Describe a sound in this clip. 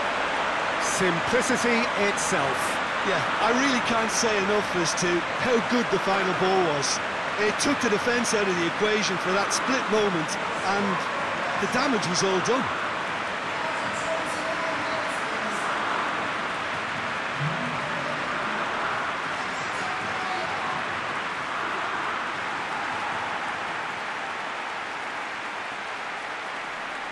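A large stadium crowd roars steadily in the distance.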